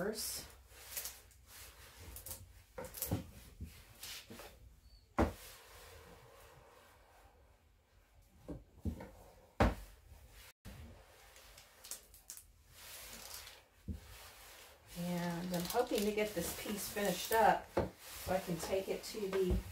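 An iron slides and rubs across fabric.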